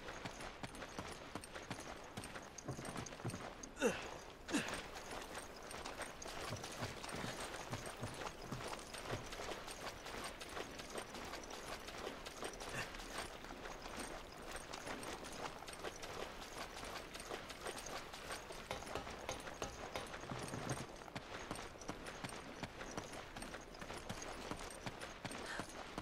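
Footsteps thud steadily on hard ground.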